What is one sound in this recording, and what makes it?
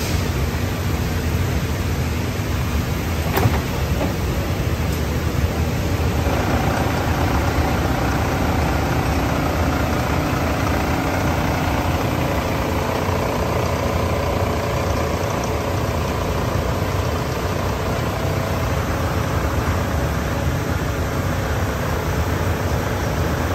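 The electric motors of a paper-cutting line hum and whir.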